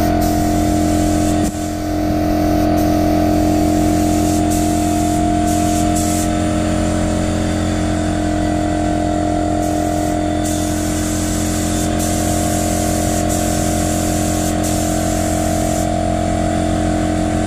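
A spray gun hisses as it sprays paint.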